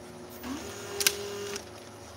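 A machine part clicks sharply once.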